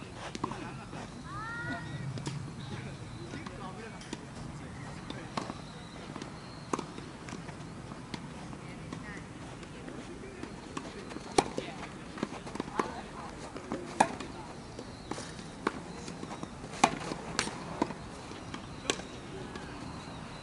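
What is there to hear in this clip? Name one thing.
Tennis balls bounce on the court.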